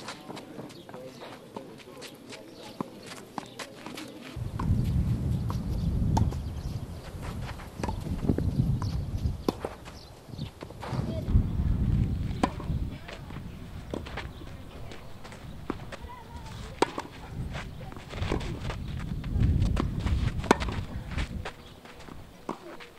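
Tennis rackets strike a ball with sharp pops, back and forth outdoors.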